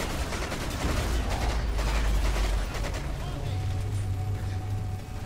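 A deep rumbling roar booms throughout.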